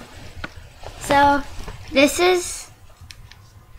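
A girl laughs and squeals.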